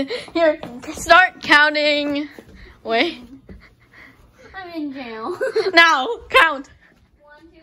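A young child talks and squeals excitedly close by.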